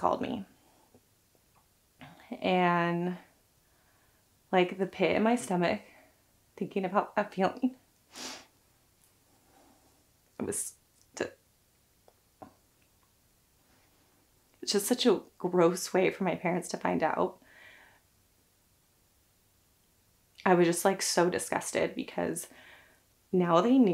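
A young woman talks calmly close to a microphone, pausing often.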